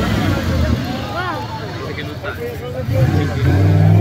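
A crowd of onlookers calls out and cheers outdoors.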